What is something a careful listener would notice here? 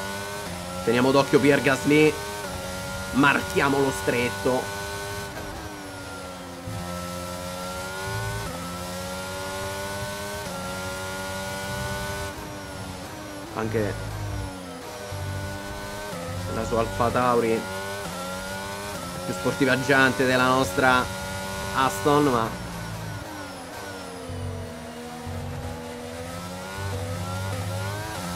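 A racing car engine screams at high revs, rising through the gears and dropping sharply when braking.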